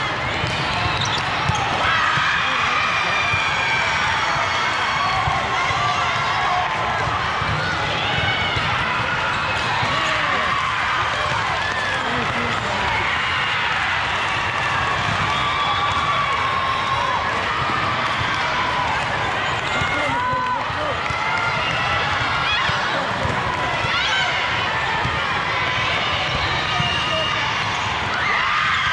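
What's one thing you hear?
A volleyball thuds as players hit it back and forth.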